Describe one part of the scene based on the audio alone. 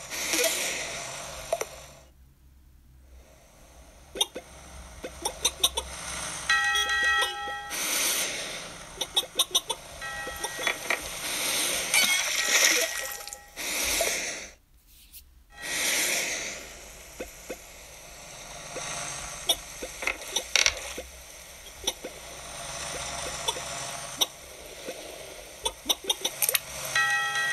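A tablet game plays short bleeps and chirpy sound effects.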